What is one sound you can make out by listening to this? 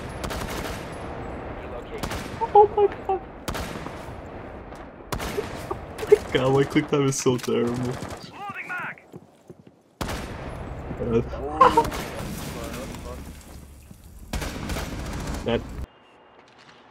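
Gunshots ring out in sharp single cracks.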